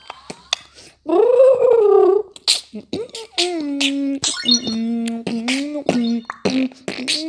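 A boy sings loudly close to a microphone.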